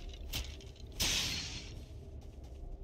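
Bones clatter and scatter as a skeleton breaks apart.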